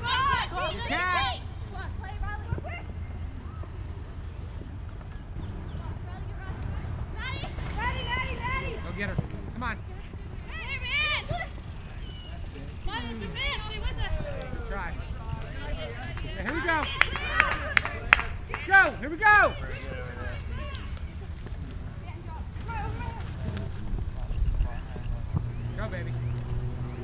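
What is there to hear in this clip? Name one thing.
Men and women on the sidelines shout and cheer outdoors, from a short distance.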